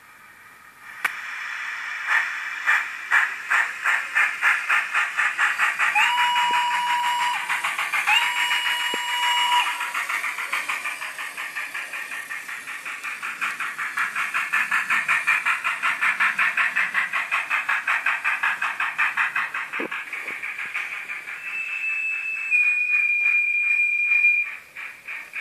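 A small model train clatters rhythmically along the track.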